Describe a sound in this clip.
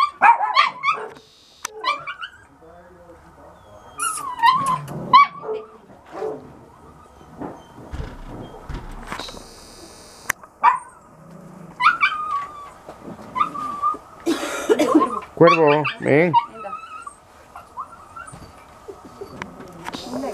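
A dog whines and yelps excitedly close by.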